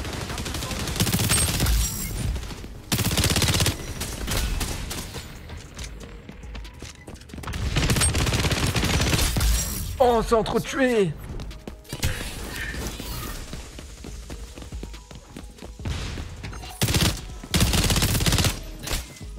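Automatic gunfire rattles in quick bursts.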